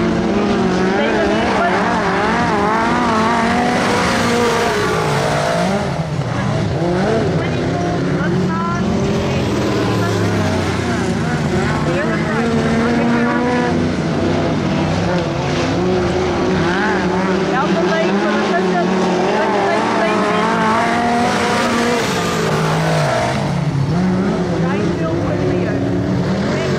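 Racing car engines roar and whine, rising and falling in pitch as they rev.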